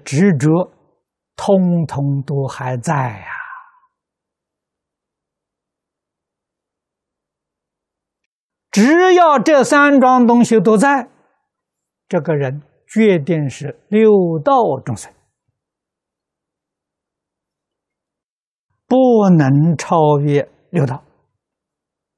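An elderly man speaks calmly and clearly into a close microphone, with long pauses.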